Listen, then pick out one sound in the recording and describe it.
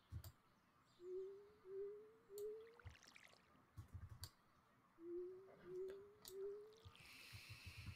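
Short rising game tones play in quick runs of three.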